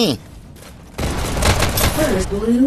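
Guns fire in rapid shots.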